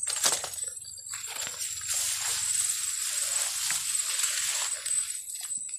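Leaves and stems rustle as someone pushes through dense plants.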